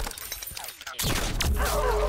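An explosion bursts with a loud boom.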